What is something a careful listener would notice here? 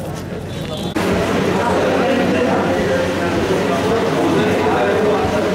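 A crowd of men and women chatter at once nearby.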